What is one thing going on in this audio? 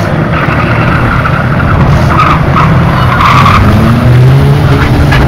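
Race car engines roar loudly outdoors.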